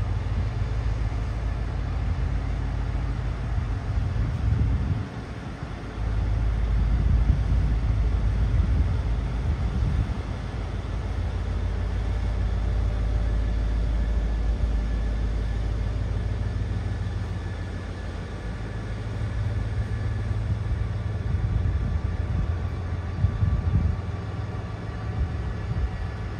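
Train wheels squeal and clatter on the rails.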